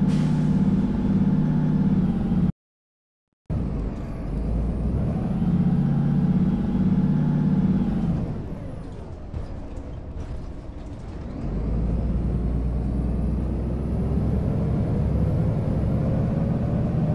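A bus engine hums and rises and falls in pitch as it drives.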